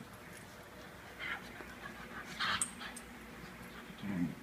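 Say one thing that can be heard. A small dog growls playfully.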